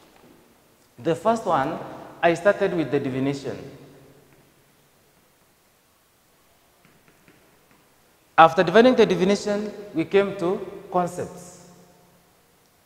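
A man speaks clearly in a lecturing tone, in short bursts.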